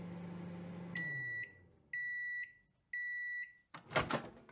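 A microwave oven beeps three times.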